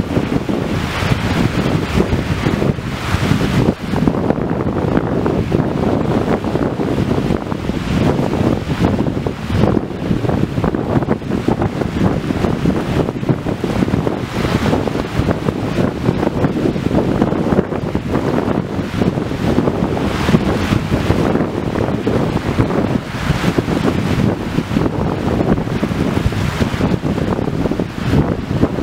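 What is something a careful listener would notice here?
Wind rumbles into a microphone outdoors.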